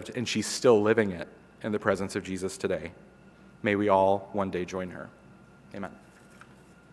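A middle-aged man speaks with feeling through a microphone in a large room.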